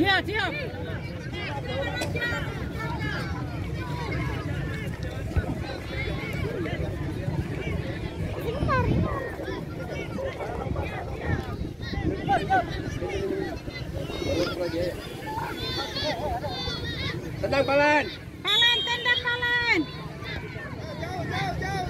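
Young children shout and chatter loudly outdoors.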